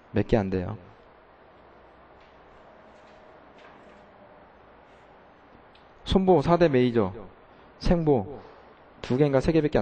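A man speaks calmly into a microphone, in short bursts with pauses.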